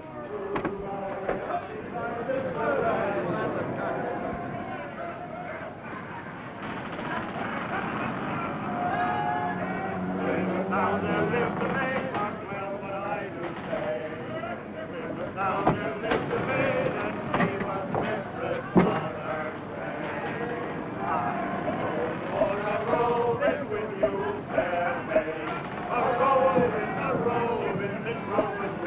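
Men talk and shout with urgency, close by.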